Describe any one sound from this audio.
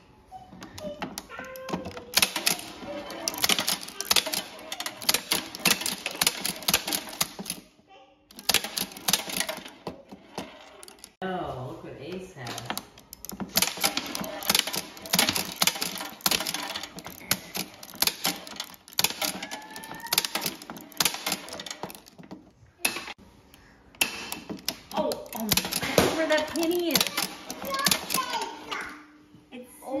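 An arcade shooting game clicks and rattles rapidly.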